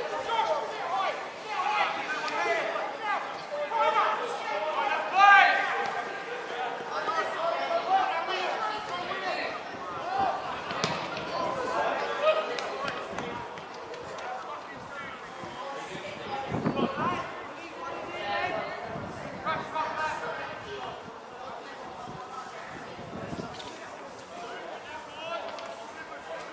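Young players shout and call to each other across an open outdoor pitch.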